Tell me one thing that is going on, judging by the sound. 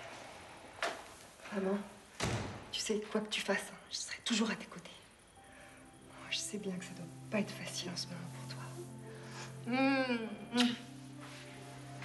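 A younger woman speaks softly nearby.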